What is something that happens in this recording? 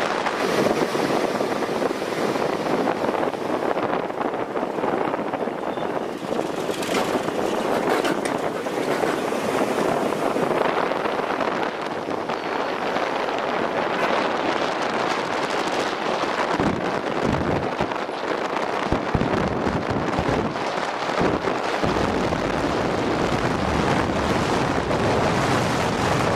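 Wind rushes and buffets loudly outdoors.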